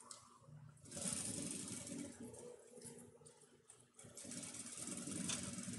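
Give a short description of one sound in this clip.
A sewing machine runs briefly, stitching.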